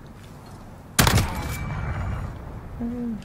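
A sniper rifle fires a single loud shot that echoes away.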